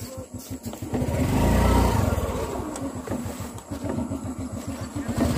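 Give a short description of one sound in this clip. A scooter engine idles with a steady putter.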